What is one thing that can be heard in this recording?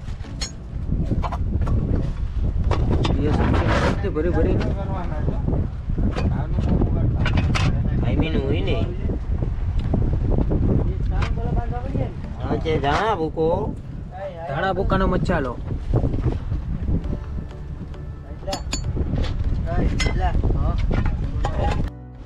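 A wooden pestle thuds and grinds in a stone mortar.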